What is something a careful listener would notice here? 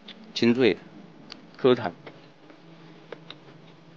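A man crunches and chews food close by.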